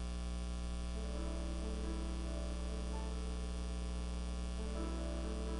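A violin plays slow, sustained notes in a room with some echo.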